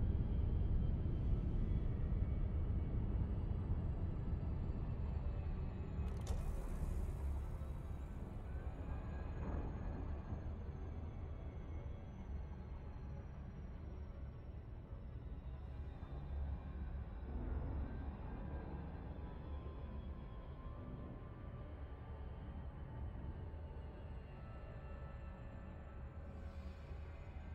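A spacecraft engine hums low and steady.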